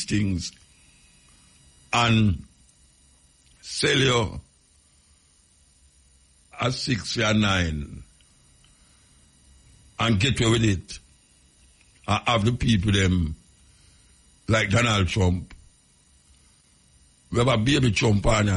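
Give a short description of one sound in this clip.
A young man speaks into a close microphone in short, animated bursts with pauses between.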